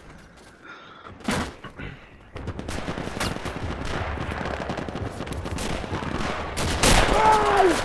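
A rifle fires loud single gunshots.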